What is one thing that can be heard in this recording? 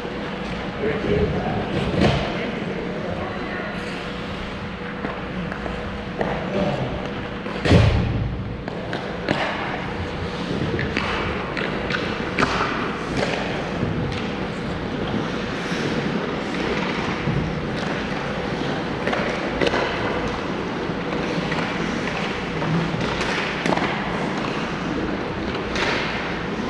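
Hockey sticks clack against pucks, echoing in a large hall.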